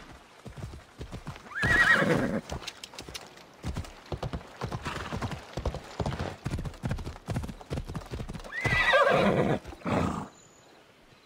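Horse hooves clop at a steady gallop on a dirt path.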